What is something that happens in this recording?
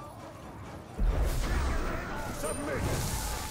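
Blades clash and swish in a fight.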